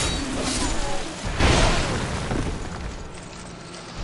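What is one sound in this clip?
Heavy blows thud against armour.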